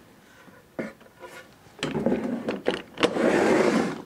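A bar clamp clicks as it is released.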